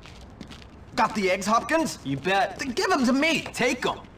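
A young man speaks loudly and with attitude.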